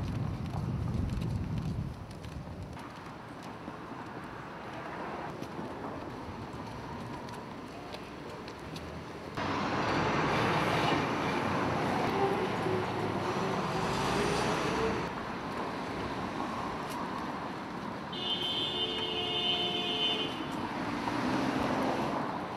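Footsteps of a crowd shuffle along a pavement outdoors.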